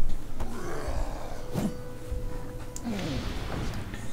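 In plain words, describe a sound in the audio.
A magic blast whooshes and crackles.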